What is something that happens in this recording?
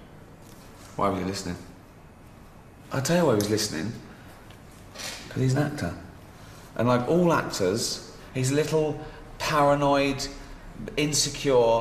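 Middle-aged men talk calmly nearby, taking turns.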